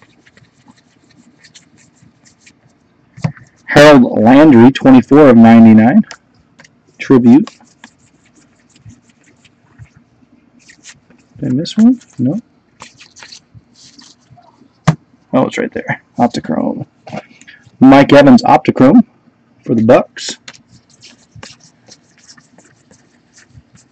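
Trading cards rustle and slide against each other as they are handled.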